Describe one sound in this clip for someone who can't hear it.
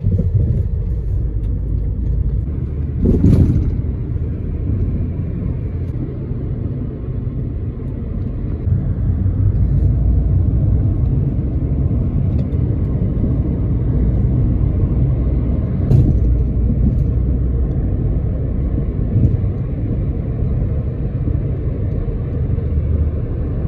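A vehicle's engine hums and rumbles steadily from inside as it drives along.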